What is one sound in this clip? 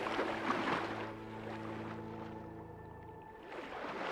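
Sound turns dull and muffled as a person dives underwater.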